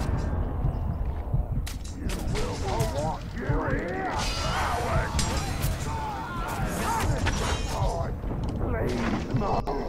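Blades clash and strike again and again in a fight.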